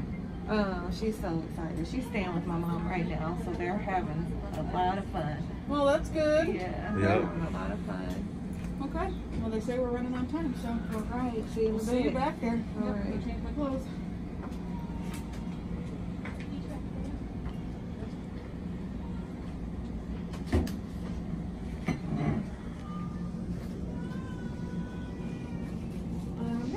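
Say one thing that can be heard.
A low steady hum of medical equipment runs throughout.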